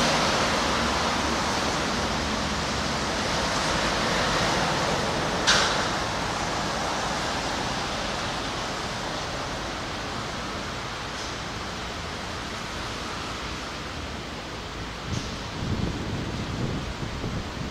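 A train rumbles along the tracks and slowly fades into the distance.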